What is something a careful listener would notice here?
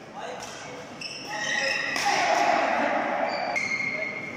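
Sports shoes squeak sharply on an indoor court floor.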